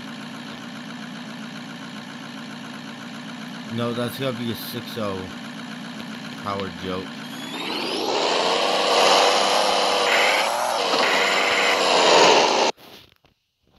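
A truck engine idles and then revs loudly.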